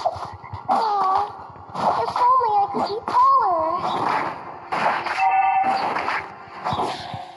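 Magic blasts and weapon hits clash in quick bursts.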